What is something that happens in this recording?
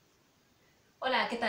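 A young woman speaks cheerfully and close by.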